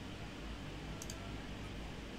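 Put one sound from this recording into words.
A soft interface blip sounds.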